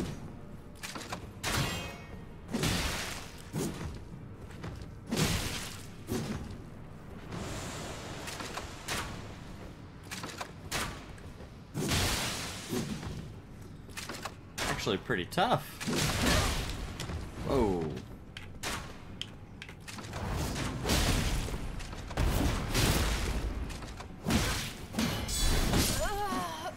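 Swords clash and slash in sharp bursts.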